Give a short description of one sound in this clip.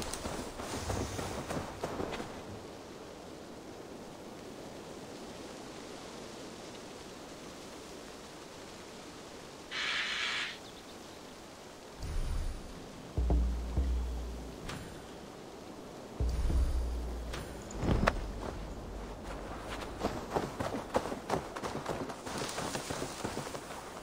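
Footsteps rustle through tall grass and leafy bushes.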